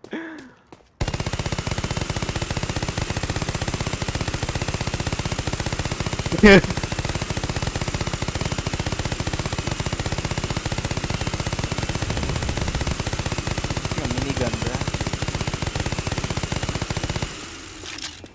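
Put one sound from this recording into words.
A rifle fires rapidly in long bursts.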